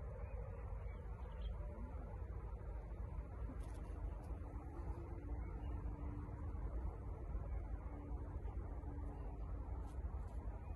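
Leaves and flower stems rustle softly in a breeze.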